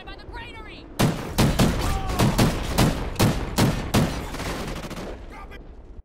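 A rifle fires in quick repeated shots.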